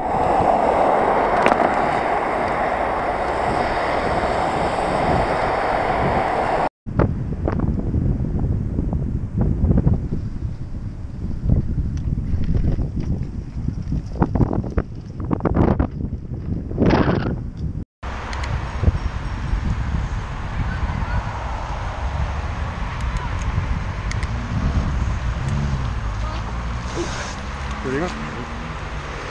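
Wind rumbles against a microphone on a moving bicycle.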